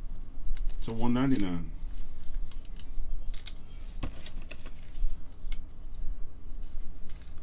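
Plastic card holders click and rattle.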